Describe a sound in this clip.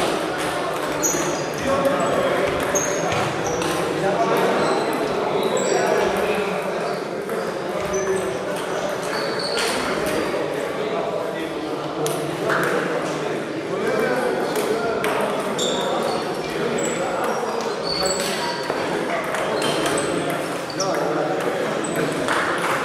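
Table tennis balls click rapidly on tables and paddles in a large echoing hall.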